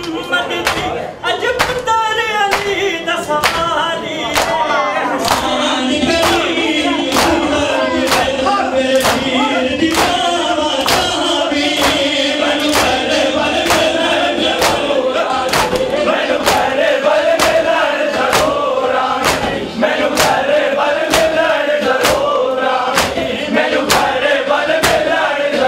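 A man chants loudly into a microphone through loudspeakers.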